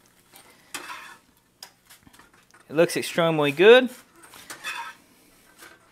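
A metal spatula scrapes across a frying pan.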